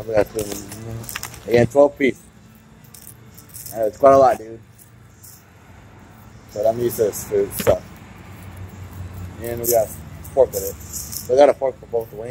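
Foil crinkles as it is unwrapped.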